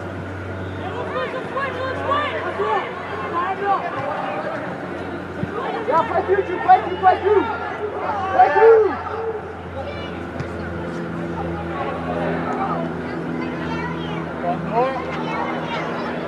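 Young players shout to each other in a large echoing hall.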